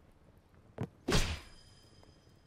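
A clay pot shatters with a sharp crack.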